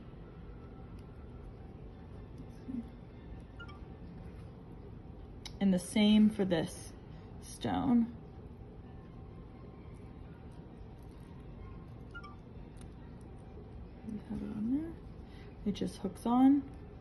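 Small metal jewellery links clink softly as fingers fasten a clasp.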